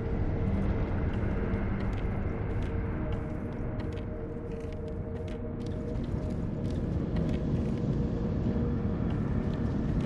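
Footsteps thud on wooden floorboards and stairs.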